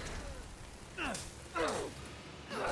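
Glass shatters with a sharp crash.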